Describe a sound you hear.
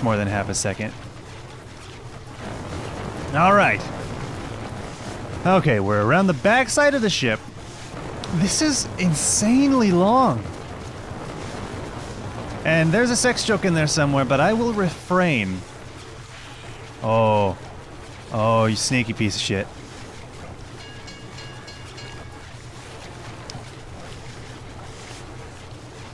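Water laps gently against a wrecked ship's hull.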